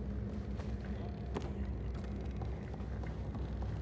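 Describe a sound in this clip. Light footsteps tap on creaking wooden boards.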